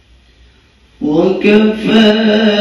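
A young man begins chanting in a melodic voice into a microphone.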